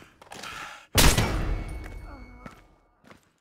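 A rifle fires a single loud shot that rings out.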